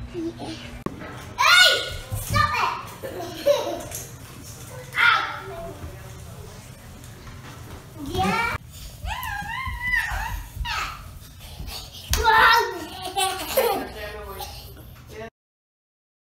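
A little girl laughs and squeals with delight.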